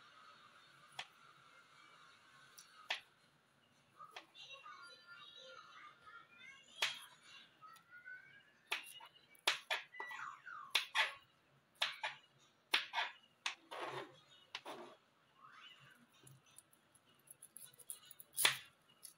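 A knife chops food against a plastic cutting board.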